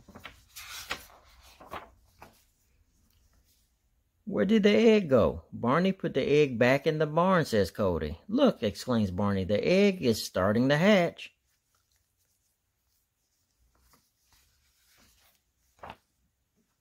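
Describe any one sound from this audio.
Paper pages rustle and flap as a book's pages are turned.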